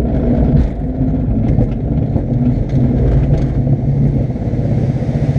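Wind rushes past the cockpit.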